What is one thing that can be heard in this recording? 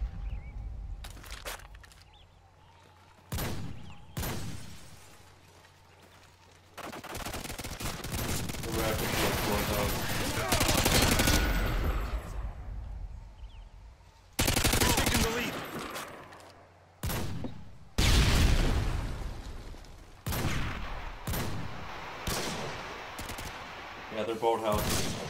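Gunfire cracks out in short bursts.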